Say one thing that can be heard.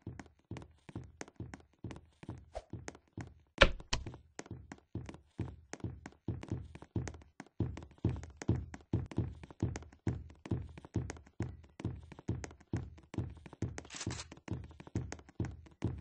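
Footsteps thud steadily and quickly on a hard floor.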